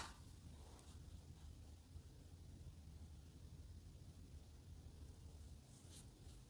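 A wet paintbrush brushes softly across paper.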